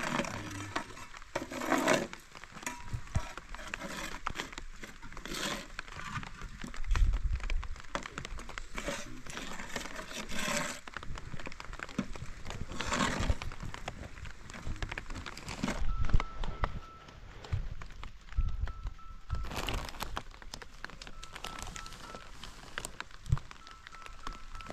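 Concrete blocks knock and scrape as they are set on a wall.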